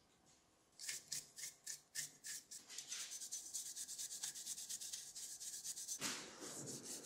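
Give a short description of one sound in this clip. A brush scrubs rapidly against a metal motor casing.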